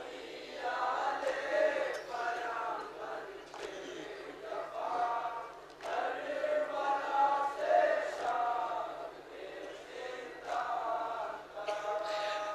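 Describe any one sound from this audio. A young man chants a mournful lament into a microphone, heard through loudspeakers.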